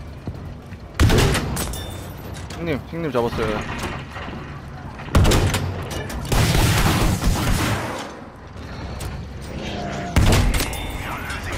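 A rifle fires sharp, loud shots now and then.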